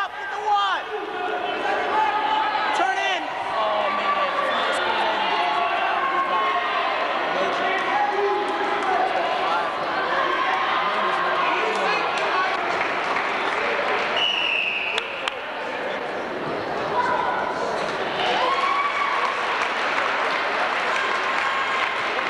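A crowd of people chatters and shouts in a large echoing hall.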